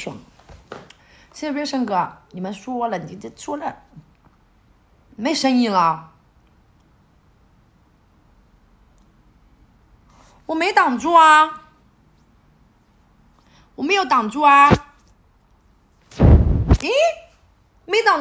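A young woman talks close to a microphone in short animated bursts, with pauses between.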